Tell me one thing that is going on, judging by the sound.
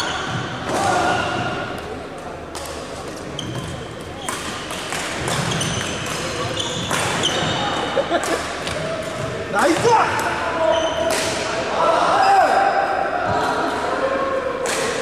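Men call out during play in a large echoing hall.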